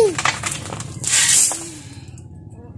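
Straw rustles as it is tossed from a shovel.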